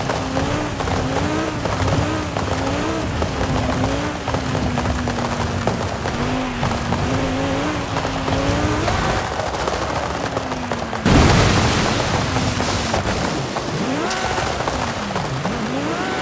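A race car engine roars and whines as it speeds, its pitch rising and falling with the gears.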